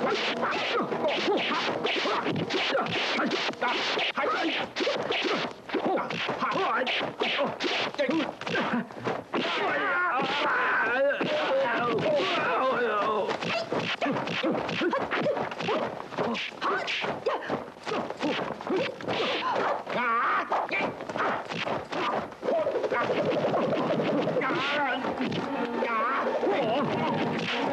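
Punches and kicks land with sharp smacks in quick succession.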